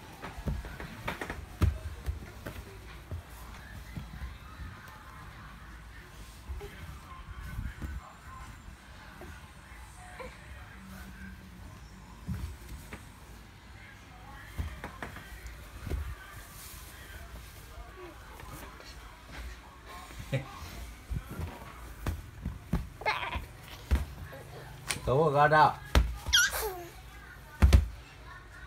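Small hands pat and thump on a mat.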